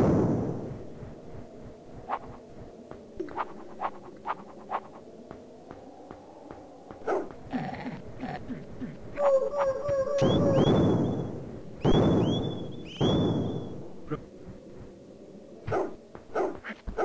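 Footsteps patter quickly in a video game.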